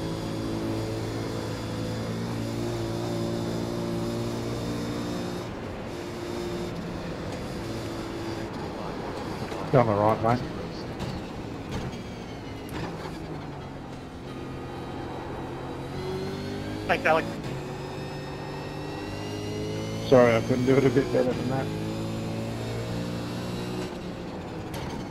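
A racing car engine drones and revs steadily as it shifts through gears.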